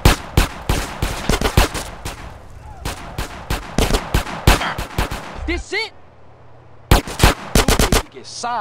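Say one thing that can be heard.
Gunshots fire in rapid bursts, echoing in a large hall.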